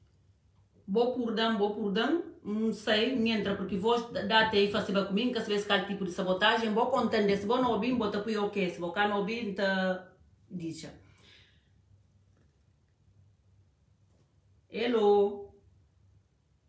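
A middle-aged woman speaks firmly and with animation, close to a phone microphone.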